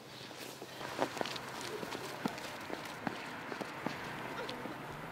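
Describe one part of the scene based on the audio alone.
Footsteps tread slowly on a hard road outdoors.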